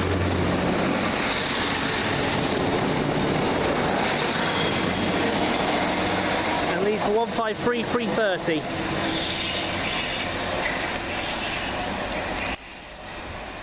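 A diesel multiple-unit train pulls away and fades into the distance.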